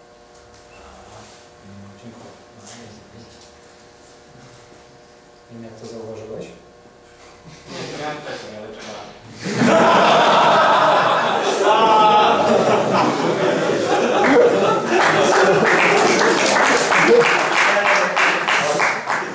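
A man speaks through a microphone in a large room.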